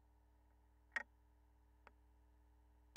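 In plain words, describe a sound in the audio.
A tonearm clicks onto a record.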